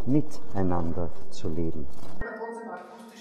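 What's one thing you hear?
An elderly man speaks calmly into a microphone, close by.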